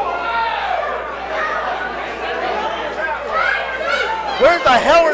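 A crowd of men and women chatters and shouts close by in an echoing hall.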